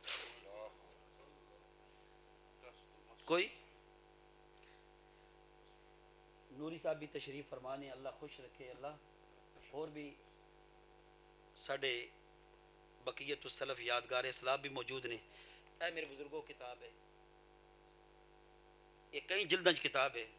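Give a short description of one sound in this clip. A middle-aged man speaks with feeling into a microphone, heard through loudspeakers, with pauses between phrases.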